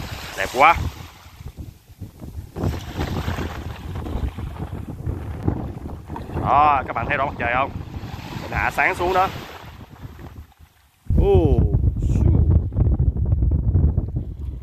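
Small waves ripple and lap gently.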